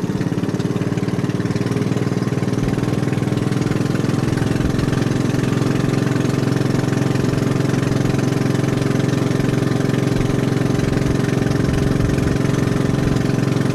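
A boat engine drones loudly and steadily close by.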